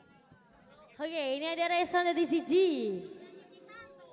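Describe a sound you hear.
A young woman sings loudly through a microphone with a loudspeaker.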